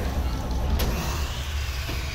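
A gun fires loudly in a video game.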